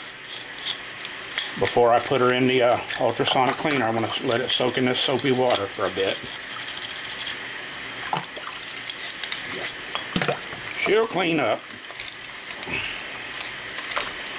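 A small brush scrubs a metal part.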